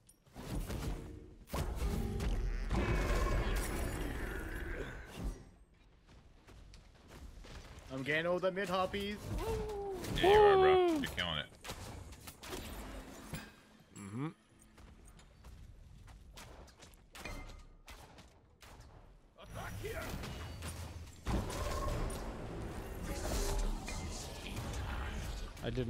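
Video game effects clash and whoosh.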